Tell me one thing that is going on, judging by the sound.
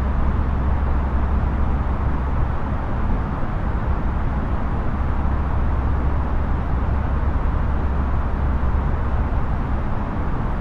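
Jet engines and cockpit air hum in a steady, low roar.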